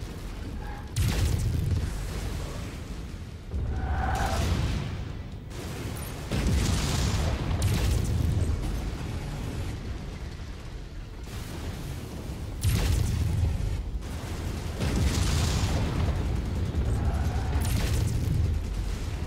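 Heavy guns fire in rapid bursts with booming blasts.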